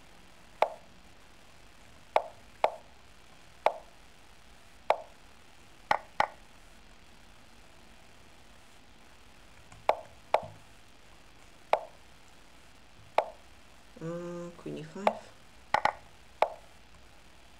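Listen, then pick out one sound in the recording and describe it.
Chess pieces click sharply as moves are made.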